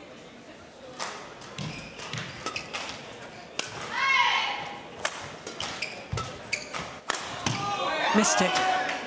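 A shuttlecock is struck back and forth by rackets in a large hall.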